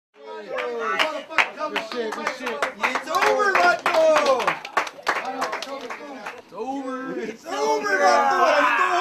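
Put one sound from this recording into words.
A young man talks loudly and animatedly close by.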